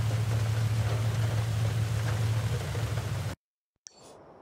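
Tyres crunch over dirt.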